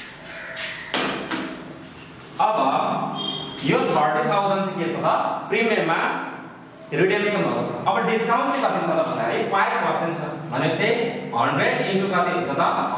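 A young man speaks clearly and with animation, close by.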